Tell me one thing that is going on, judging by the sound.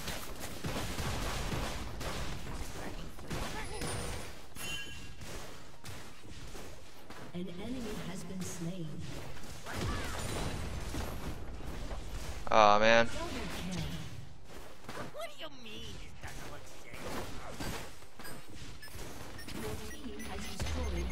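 Magic blasts and hits crackle and thump in a game battle.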